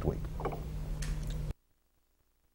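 A man speaks briefly into a microphone.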